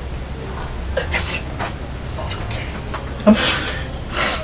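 A young woman cries out in distress.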